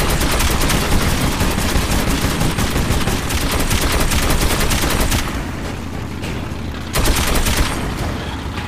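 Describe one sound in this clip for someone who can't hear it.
A heavy machine gun fires a long, rapid burst, then a short burst.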